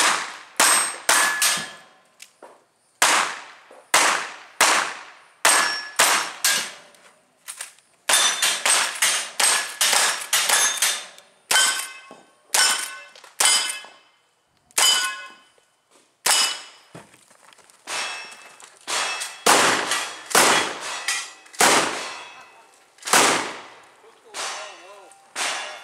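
A shooter fires rapid gunshots outdoors.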